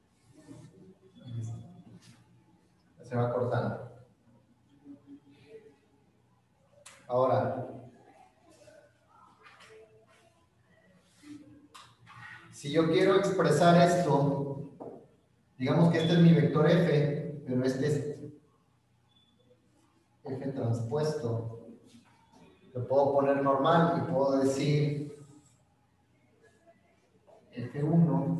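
A young man lectures calmly nearby, heard through an online call.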